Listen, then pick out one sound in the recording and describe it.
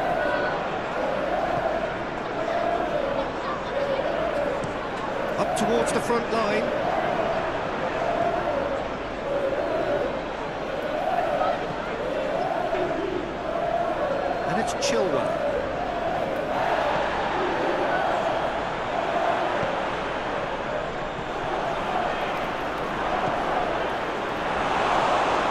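A large stadium crowd chants and cheers steadily.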